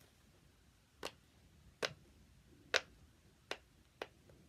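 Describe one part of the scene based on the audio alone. Silicone bubbles pop with soft clicks as they are pressed.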